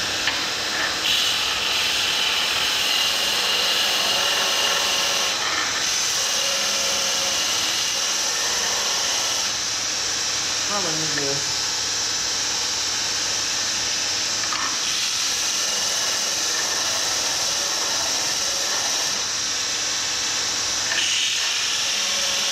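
Metal grinds against a spinning wheel in bursts with a harsh hiss.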